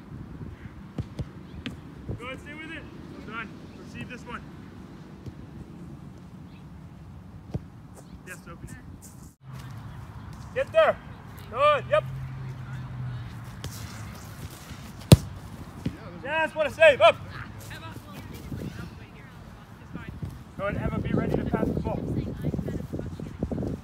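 A soccer ball is kicked with a dull thud outdoors.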